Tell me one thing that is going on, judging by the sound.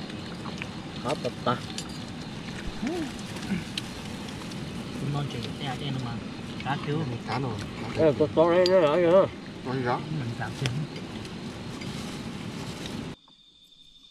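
Plastic bags rustle as hands pick at food.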